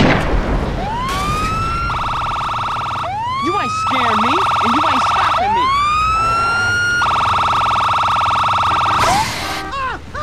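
A police siren wails and whoops nearby.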